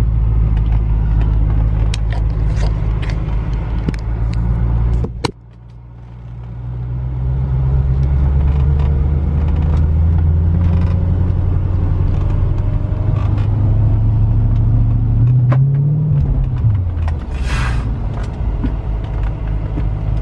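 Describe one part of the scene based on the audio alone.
A car engine idles with a low, steady hum, then drops briefly and revs up again.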